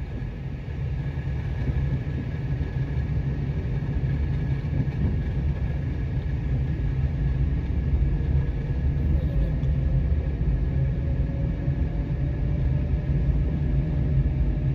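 A car drives along an asphalt road, heard from inside with a low rumble.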